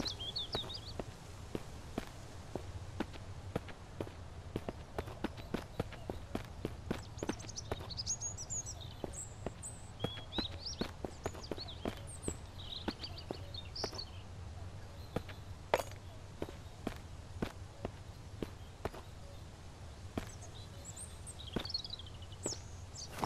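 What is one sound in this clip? Footsteps crunch steadily on dirt and dry leaves.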